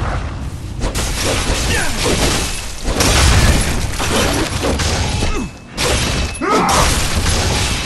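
Heavy blade strikes slash and thud into flesh.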